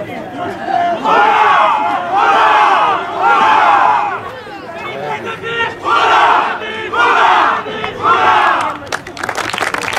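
A group of men shouts a rhythmic chant in loud bursts outdoors.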